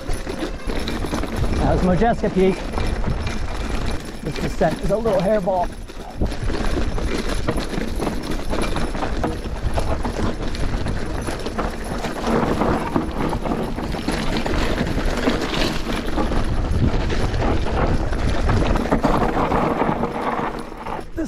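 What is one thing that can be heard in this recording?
Bicycle tyres crunch and rattle over loose rocky ground.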